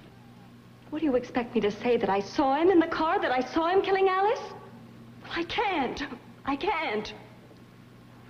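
A young woman speaks with strong feeling.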